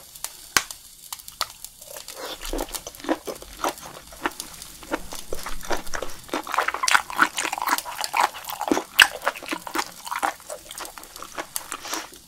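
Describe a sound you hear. A woman chews food wetly and noisily close to a microphone.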